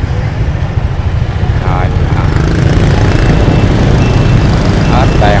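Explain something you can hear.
Motorbike engines idle and rumble close by, outdoors.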